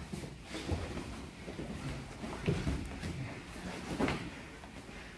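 Bodies thump softly against a mat.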